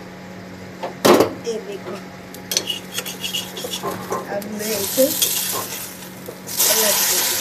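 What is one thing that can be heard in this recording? A spatula clanks against a metal pan.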